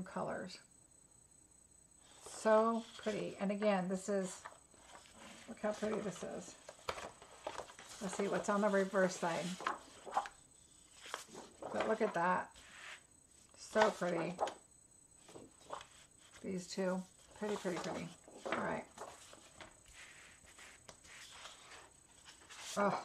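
Sheets of paper rustle and slide against each other as they are handled.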